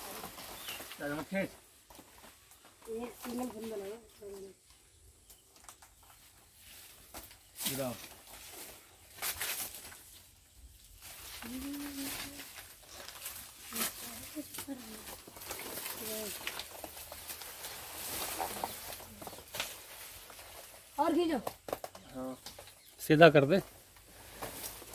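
Men talk to each other outdoors now and then.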